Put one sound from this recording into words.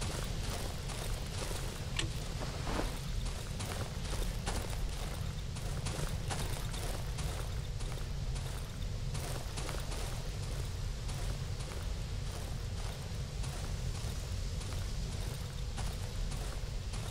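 Footsteps tread slowly over a rough floor.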